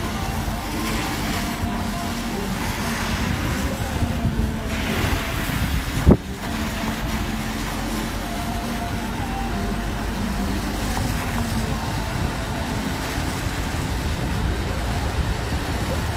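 Wind blows hard outdoors, buffeting the microphone.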